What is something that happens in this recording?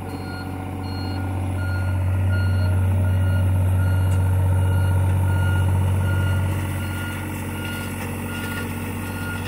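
A diesel mini excavator engine runs under load, rising and then easing off.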